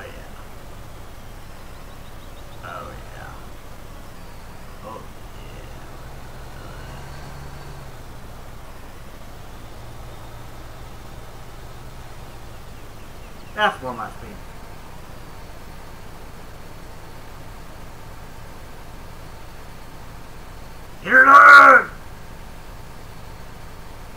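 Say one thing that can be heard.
A tractor engine hums steadily at a low pitch.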